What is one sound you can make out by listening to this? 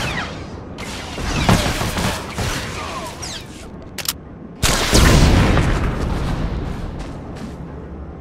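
Blaster shots and explosions crack during a fight.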